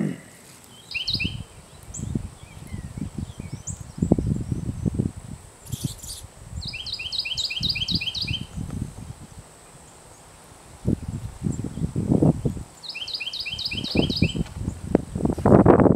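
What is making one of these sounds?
A small bird gives quick bursts of sharp, high chips.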